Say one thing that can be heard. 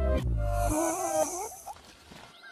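A cartoon creature yells with its mouth wide open.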